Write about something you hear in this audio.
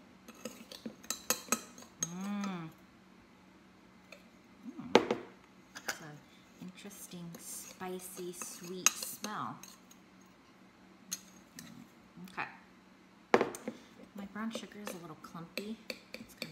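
A spoon clinks and scrapes against a glass bowl.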